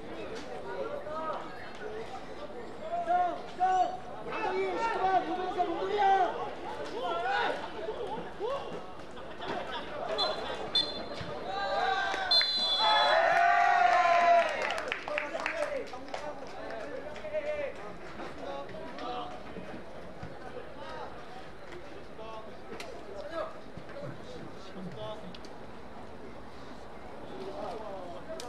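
Young players shout and call out across an outdoor pitch.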